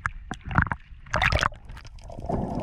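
Water splashes briefly at the surface.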